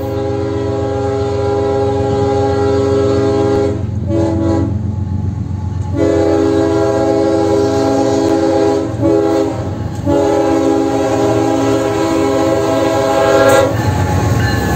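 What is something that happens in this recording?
A train horn blares loudly and long, in repeated blasts.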